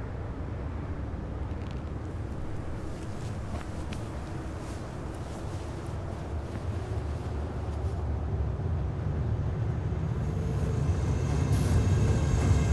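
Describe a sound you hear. Strong wind blows steadily in a snowstorm, growing louder toward the end.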